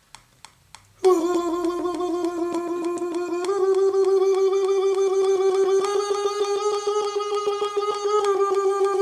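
A young man blows a steady, whistling tone through his cupped hands close to a microphone.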